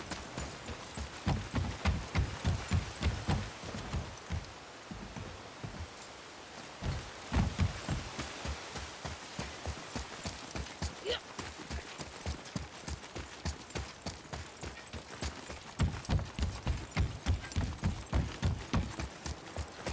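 Footsteps thud on a wooden bridge.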